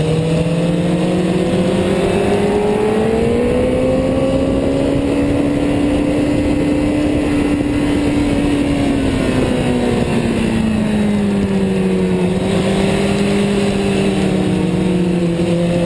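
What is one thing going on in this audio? A motorcycle engine roars close by, rising and falling in pitch as it speeds up and slows.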